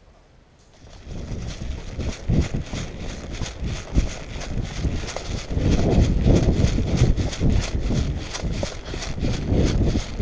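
Footsteps run over leaf litter.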